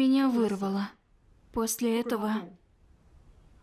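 A woman speaks quietly and haltingly, close by.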